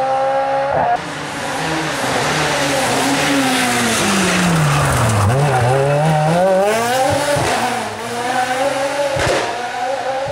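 A second rally car engine roars closer, drops low as it brakes past, then revs hard again.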